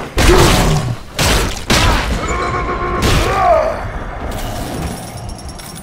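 A heavy creature roars and groans.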